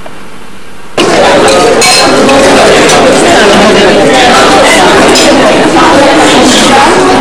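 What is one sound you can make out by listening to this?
A crowd of people chatters loudly close by.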